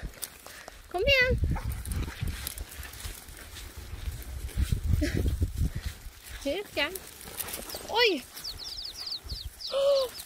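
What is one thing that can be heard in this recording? A dog whines and yips close by.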